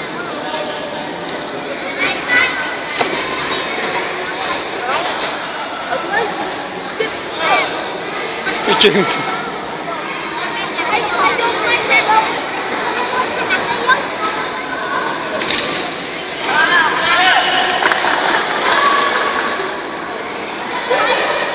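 Children shout and cheer in an echoing hall.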